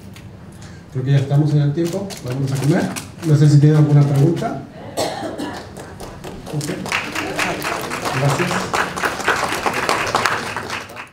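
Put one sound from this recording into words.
A man speaks calmly through a microphone and loudspeakers in a large room.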